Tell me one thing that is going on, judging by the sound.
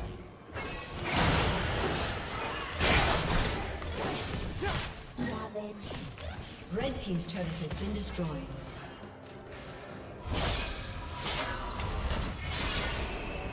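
Magic spells whoosh and burst in a fast fight.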